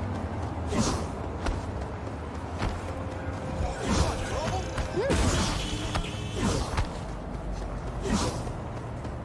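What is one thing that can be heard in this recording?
Footsteps run quickly on hard pavement.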